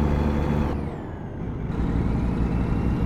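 A truck engine drops briefly as gears shift, then pulls again.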